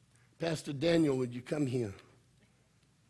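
A man speaks loudly and with feeling into a microphone.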